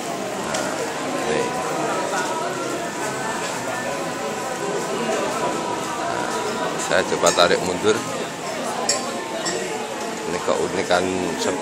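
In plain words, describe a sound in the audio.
A crowd of young men and women chat and murmur nearby.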